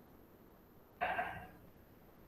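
A young woman speaks briefly through an online call.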